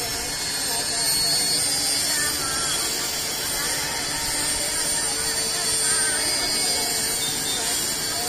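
A crowd of people chatters in a busy street outdoors.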